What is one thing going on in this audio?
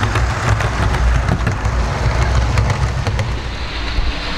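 Model train wheels click over the rail joints.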